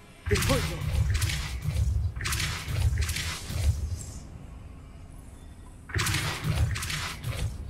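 A magic spell crackles and whooshes in a video game.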